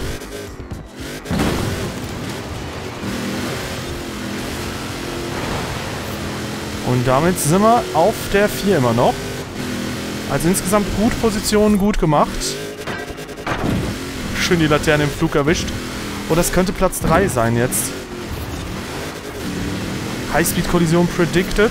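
A racing car engine roars steadily and revs up and down.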